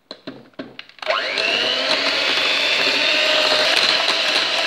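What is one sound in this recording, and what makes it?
An electric hand mixer whirs loudly and steadily.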